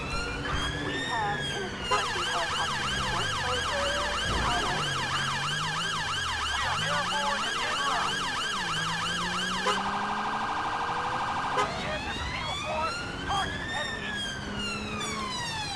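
A police siren wails, switches to a fast yelp and then a rapid warble.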